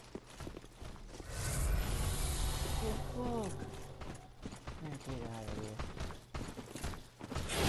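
Footsteps in armour thud and clank.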